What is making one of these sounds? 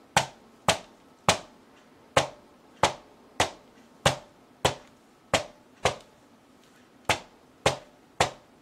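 A foam dabber taps repeatedly on paper on a table, in quick sharp knocks.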